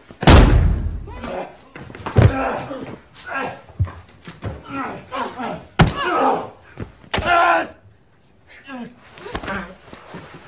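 Bodies thud heavily against a wooden floor in a scuffle.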